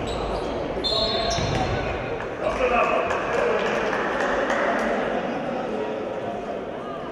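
Shoes squeak sharply on a hall floor.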